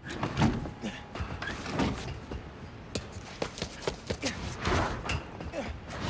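Footsteps scrape and thump on a snowy ledge.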